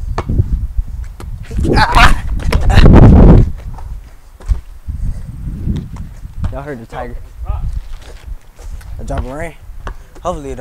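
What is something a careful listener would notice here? A basketball bounces on concrete.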